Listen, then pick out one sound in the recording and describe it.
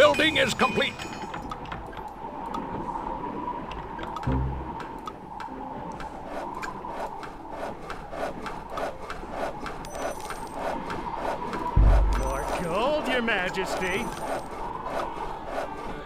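Game music plays with a steady beat.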